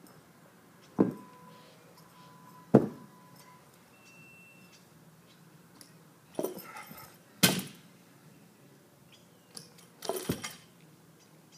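A heavy barbell clanks as its weight plates knock together.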